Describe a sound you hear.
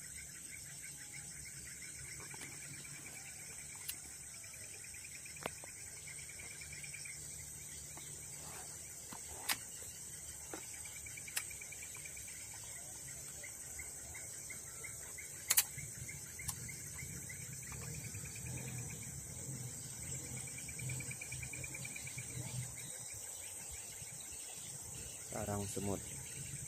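Wasps buzz softly around a nest.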